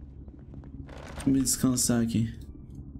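A young man speaks briefly with animation into a close microphone.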